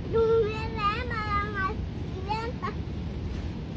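A young girl calls out in a high voice nearby.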